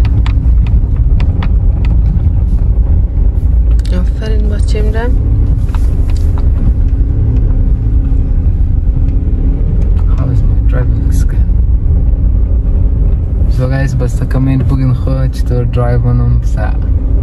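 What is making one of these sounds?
A car engine hums steadily from inside the car.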